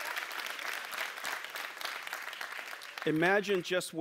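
A large crowd cheers and applauds in a big hall.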